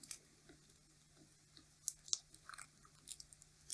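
Tape peels away with small sharp crackles.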